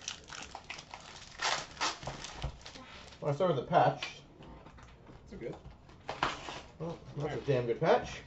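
Foil trading card packs crinkle as they are torn open.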